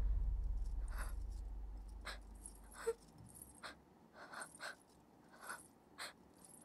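A young woman gasps and sobs softly nearby.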